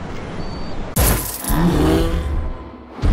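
A large dinosaur bellows with a deep, rough roar.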